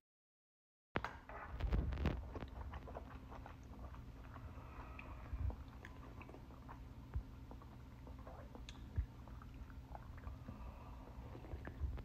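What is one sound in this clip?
An elderly woman slurps noodles from a bowl.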